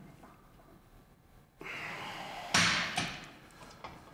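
A weight machine clanks.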